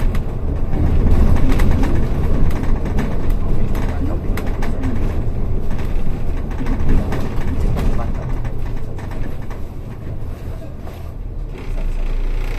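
A vehicle rumbles loudly as it drives along a road.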